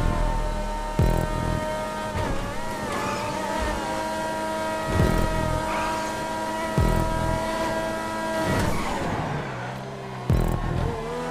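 A race car's gears shift with sharp thumps.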